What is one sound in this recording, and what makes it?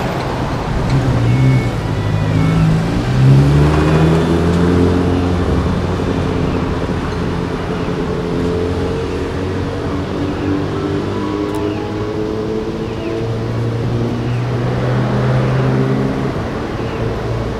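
A bus engine rumbles nearby as the bus pulls slowly past.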